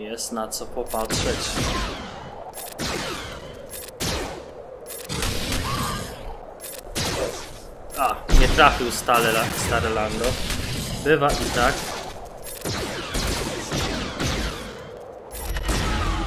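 Laser blasters zap and crackle in bursts.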